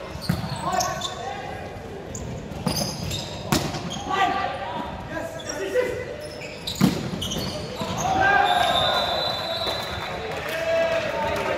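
Young men call out and shout to each other during play.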